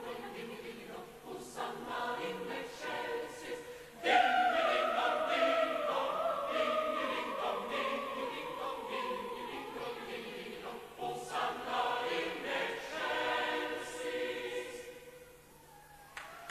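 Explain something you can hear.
A large choir sings outdoors, heard from a distance.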